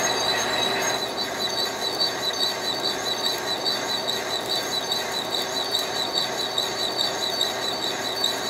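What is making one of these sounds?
A cutting tool scrapes against spinning metal with a rhythmic tapping.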